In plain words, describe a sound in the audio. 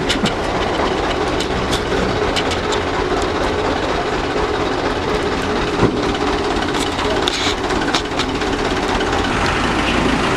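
A truck engine idles and rumbles steadily nearby.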